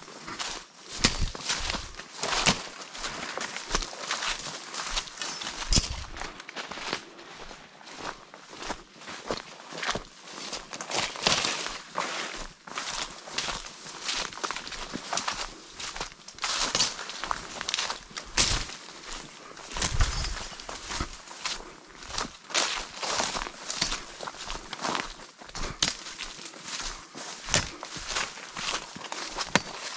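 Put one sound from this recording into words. Footsteps crunch through dry grass and leaves on a path.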